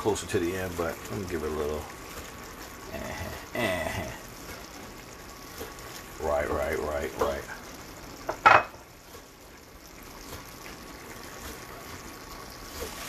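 A thick sauce simmers and bubbles softly in a pan.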